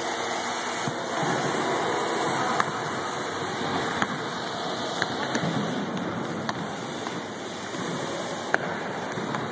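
Basketballs bounce on a hard floor, echoing in a large hall.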